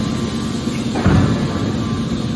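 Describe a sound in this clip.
A heavy metal lid bangs shut with a loud clang.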